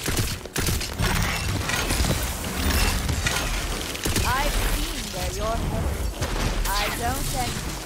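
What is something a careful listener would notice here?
Electric energy crackles and zaps.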